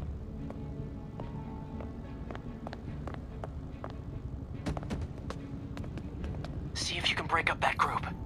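Footsteps patter quickly on a hard stone floor.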